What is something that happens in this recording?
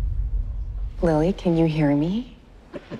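A woman speaks softly and anxiously, close by.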